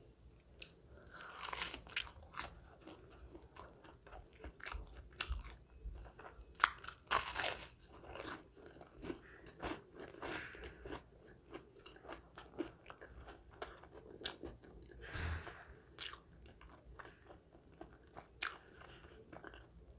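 A woman chews and crunches loudly close to a microphone.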